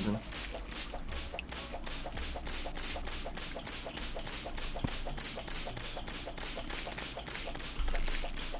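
A weapon whooshes in quick, steady repeated swings.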